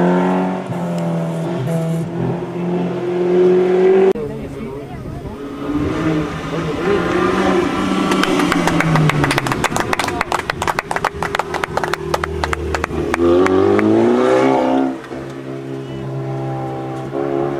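A rally car engine revs hard and roars loudly.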